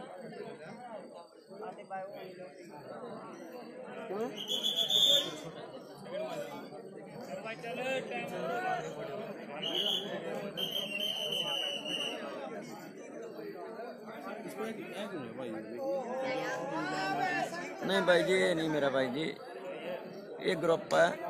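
A crowd of men talks and shouts outdoors at close range.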